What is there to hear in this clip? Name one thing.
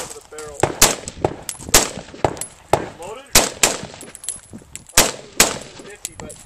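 A rifle fires a rapid series of loud, sharp shots outdoors, echoing off nearby hills.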